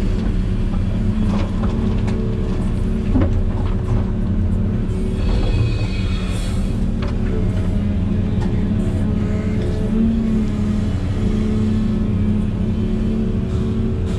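A hydraulic excavator whines as its arm moves.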